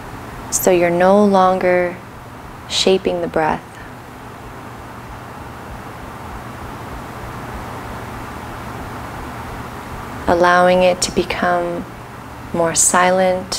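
A young woman speaks calmly and softly into a close microphone, with long pauses.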